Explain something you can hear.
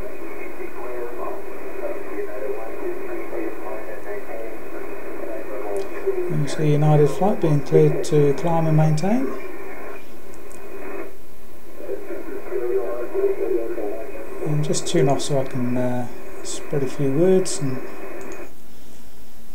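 A radio receiver hisses with static.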